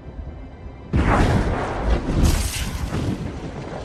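A magical beam of energy bursts with a loud whoosh and rumble.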